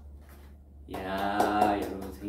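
A young woman claps her hands.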